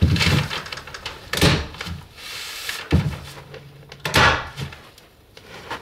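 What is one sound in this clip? Plastic sheeting crinkles and rustles.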